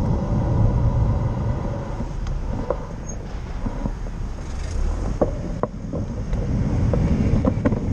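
A car engine idles close by.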